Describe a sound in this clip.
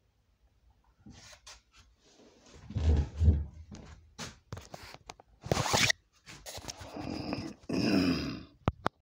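Hands rub and knock close by, rustling and thumping.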